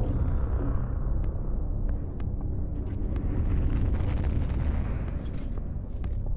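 Spaceship engines rumble and drone deeply.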